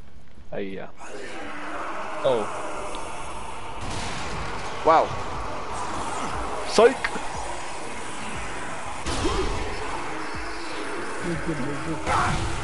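Gunfire and an explosion crack over a noisy din.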